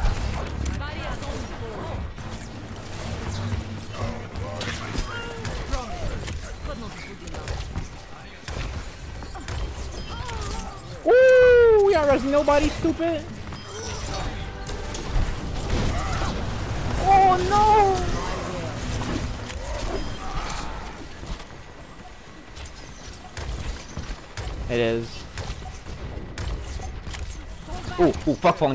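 A futuristic gun fires rapid energy shots.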